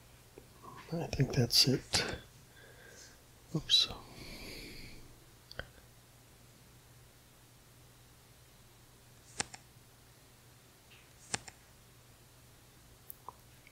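A playing card flips over with a soft click.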